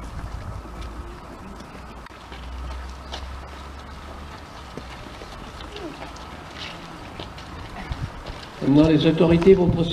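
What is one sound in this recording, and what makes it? Children's footsteps shuffle on stone steps outdoors.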